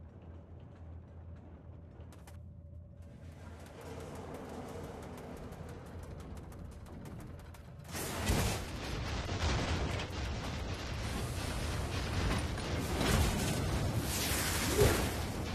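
Blades whoosh and clash in a fight.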